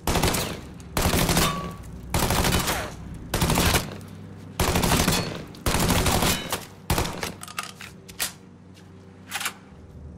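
Gunshots fire in short bursts and echo loudly.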